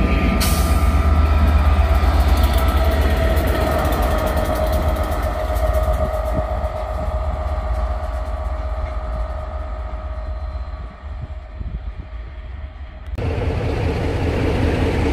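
Wind blusters across an outdoor microphone.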